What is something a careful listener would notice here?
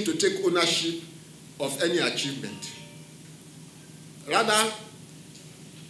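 An elderly man speaks into a microphone in short bursts with pauses.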